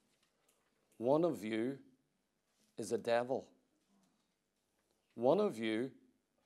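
A middle-aged man speaks emphatically into a microphone in short bursts with pauses.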